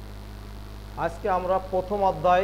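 A man speaks clearly and with animation, close by.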